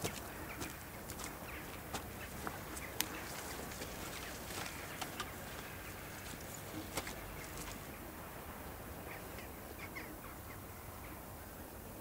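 A loaded trolley rattles and creaks as it is pushed along.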